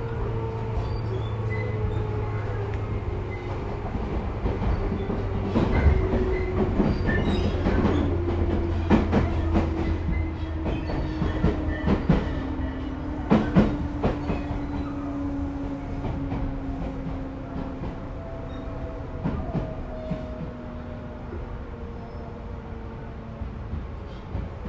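Train wheels clack and squeal on the rails.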